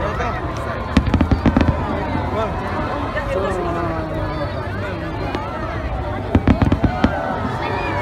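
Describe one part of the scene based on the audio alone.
Fireworks boom and crackle in the distance.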